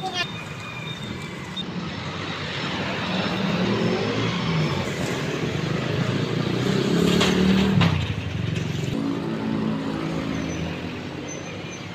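Motorbike engines hum past on a street outdoors.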